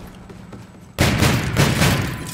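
A pistol fires several loud shots.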